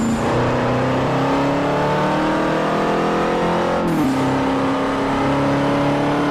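A car engine revs hard, rising in pitch.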